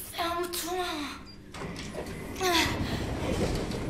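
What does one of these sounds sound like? A young woman speaks with frustration, close by.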